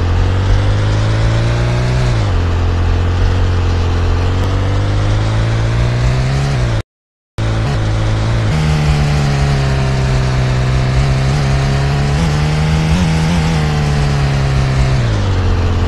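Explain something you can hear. A car engine drones steadily, rising and falling in pitch as the car drives and turns.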